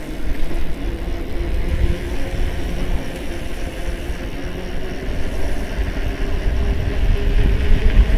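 Wind rumbles loudly past a bicycle rider outdoors.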